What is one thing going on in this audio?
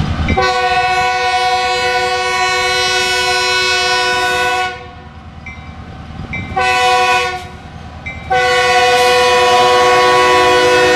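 A diesel locomotive engine rumbles as it rolls closer.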